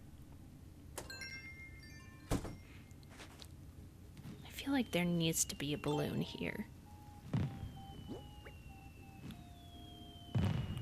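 Short electronic chimes and blips play.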